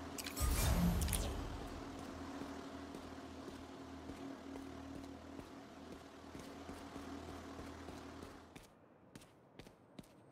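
Quick footsteps patter across a hard rooftop.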